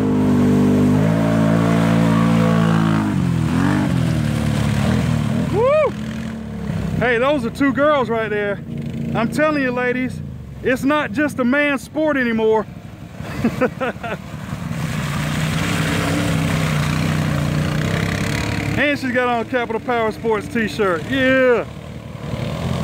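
An all-terrain vehicle engine revs and roars close by.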